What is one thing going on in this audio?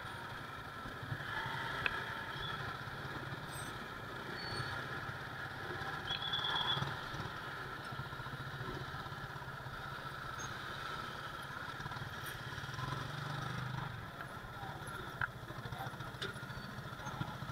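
A motorcycle engine idles and putters close by.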